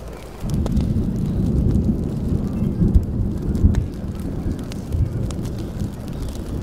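A wood fire crackles and pops with a low, steady roar.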